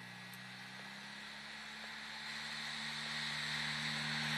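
Tyres hiss over packed snow, getting louder as the car comes close.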